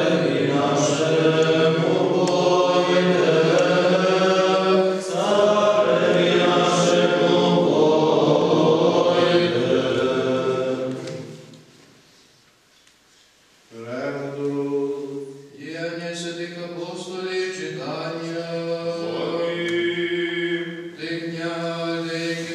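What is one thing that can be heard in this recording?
Men chant in unison, echoing in a large room.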